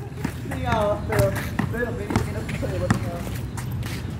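A basketball bounces on wet concrete.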